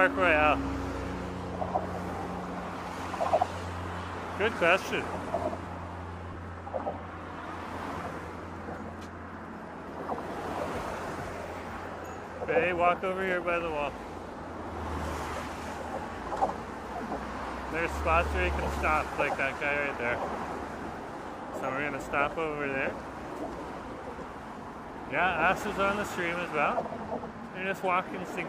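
Car tyres hum past on a road nearby.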